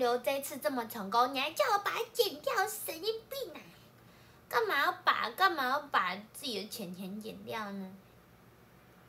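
A young woman talks animatedly and close up.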